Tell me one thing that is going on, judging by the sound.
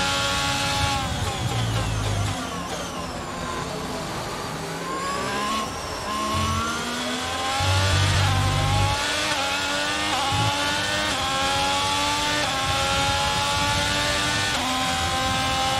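A racing car engine drops in pitch as the car slows, then rises again through gear changes.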